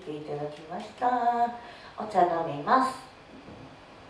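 A young woman speaks brightly into a microphone, heard through loudspeakers in an echoing room.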